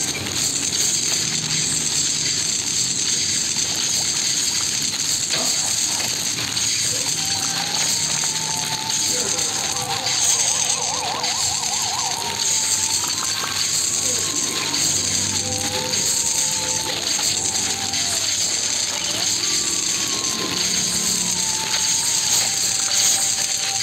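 Electric zapping effects crackle in a video game.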